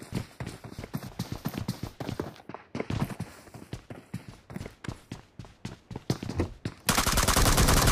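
Footsteps thud quickly on hard floors and stairs.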